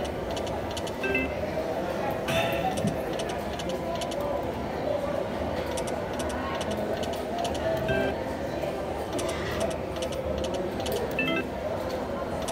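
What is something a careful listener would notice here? A slot machine plays short electronic chime tunes.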